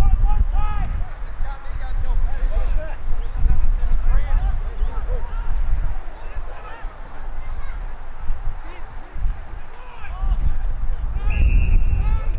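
Men shout and call to each other across an open field.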